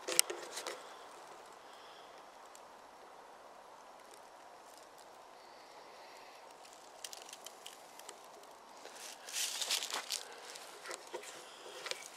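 Dry leaves crunch underfoot as a man walks.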